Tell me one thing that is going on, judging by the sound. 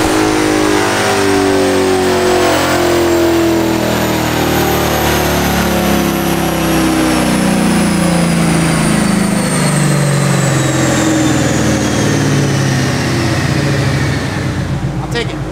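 A car engine roars loudly at high revs in an echoing room, then slowly winds down.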